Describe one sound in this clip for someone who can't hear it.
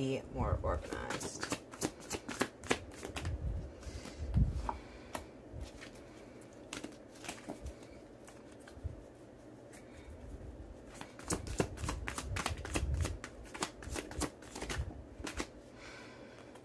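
Playing cards shuffle with quick, crisp flicks.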